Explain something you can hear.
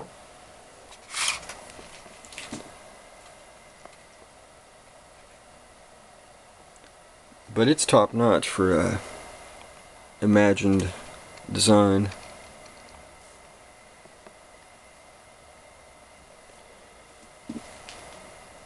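A hard object is handled and knocks lightly on a wooden surface.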